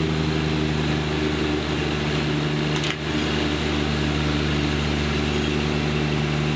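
A small tractor engine runs steadily close by.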